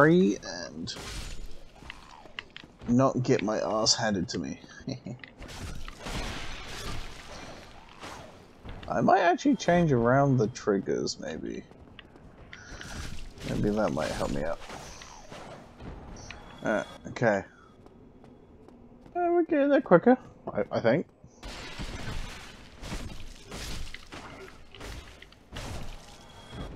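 A sword slashes and clangs against enemies.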